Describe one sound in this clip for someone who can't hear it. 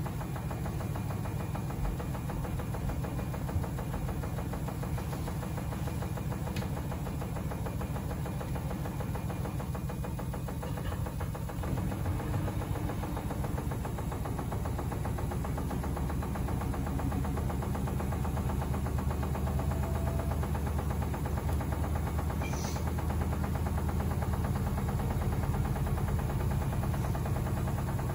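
A washing machine drum turns with a steady low hum.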